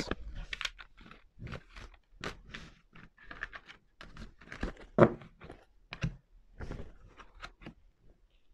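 Playing cards shuffle and slap softly together.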